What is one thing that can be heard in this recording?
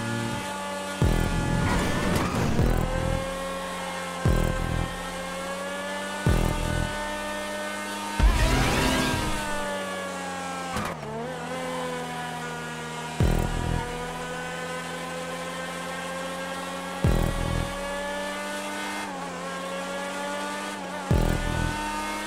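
Tyres thump over bumps in the track.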